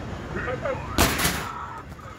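A fist strikes an arcade punching bag with a loud thud.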